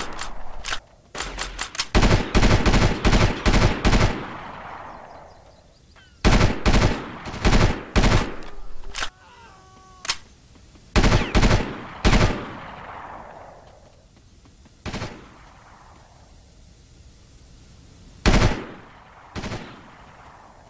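A rifle fires in short bursts of sharp shots that echo away outdoors.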